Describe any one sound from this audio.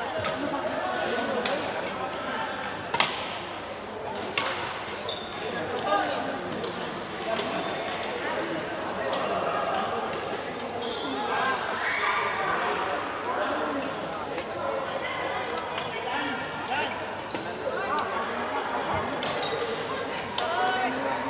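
Voices of players chatter in a large echoing hall.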